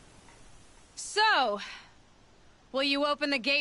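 A young woman speaks calmly, close by.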